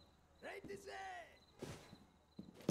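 A rifle fires loud, sharp shots.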